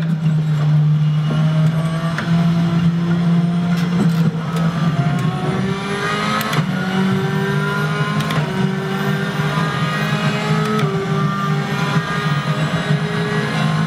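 A racing car engine roars, its pitch climbing and dropping back again and again as it shifts through the gears.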